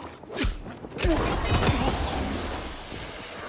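A magic blast bursts with a rushing whoosh.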